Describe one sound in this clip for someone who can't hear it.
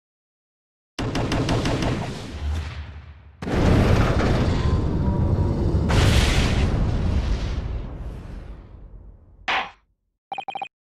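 Fire whooshes and roars as flames flare up.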